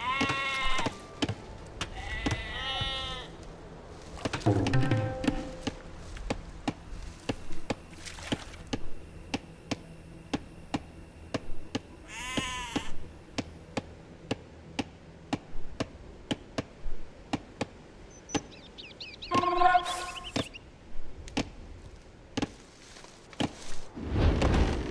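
Short game interface clicks tick at a steady pace.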